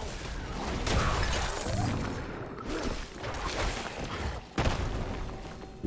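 Heavy blows thud and crash in a fierce fight.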